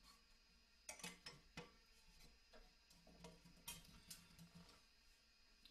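Metal valves of a horn click and rattle in a man's hands.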